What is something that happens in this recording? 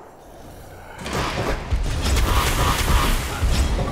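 Fireballs roar and whoosh through the air.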